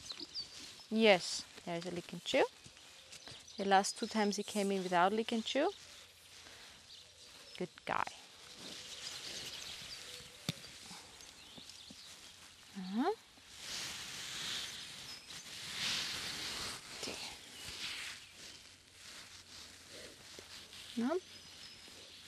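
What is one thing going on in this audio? A young woman speaks calmly outdoors.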